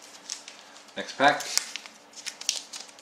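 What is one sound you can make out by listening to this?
A foil wrapper crinkles in a hand.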